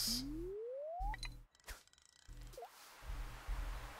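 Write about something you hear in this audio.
A fishing line swishes as it is cast.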